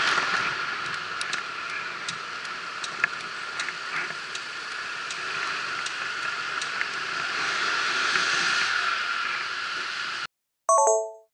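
A bicycle rattles and clicks over bumps in the road.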